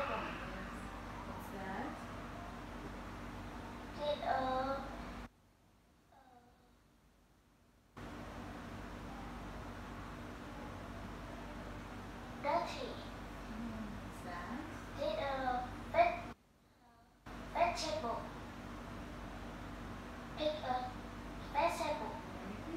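A young woman speaks calmly and clearly to a child close by.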